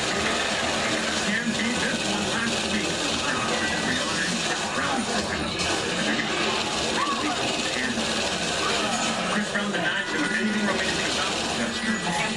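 Gunfire from a video game rattles through a television loudspeaker.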